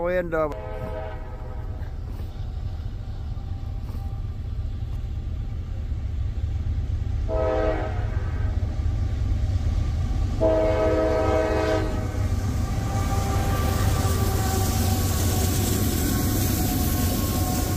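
A freight locomotive rumbles past, growing louder.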